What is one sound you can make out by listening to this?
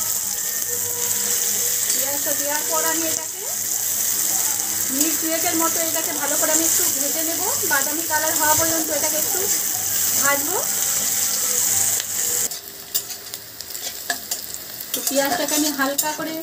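A metal spatula scrapes and stirs against a pan.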